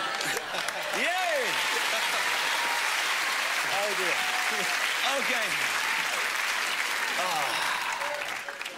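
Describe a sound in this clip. People in an audience cheer and whoop.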